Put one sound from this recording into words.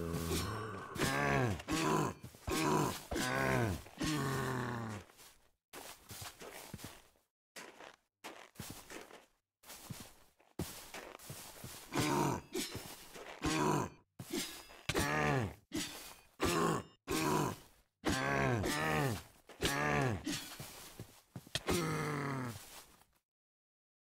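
A zombie groans in low, rising moans again and again.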